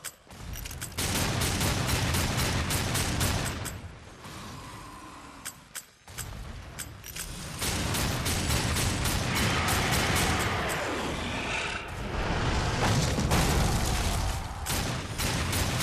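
Pistols fire rapid shots in bursts.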